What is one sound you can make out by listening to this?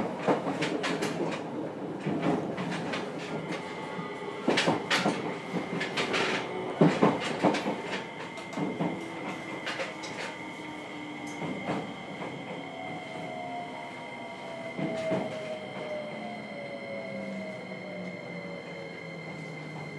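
An electric train motor whines with a steady hum that slowly falls in pitch.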